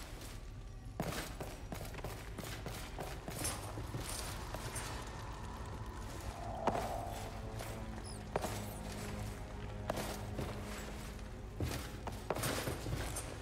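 A sword swishes through the air and clashes.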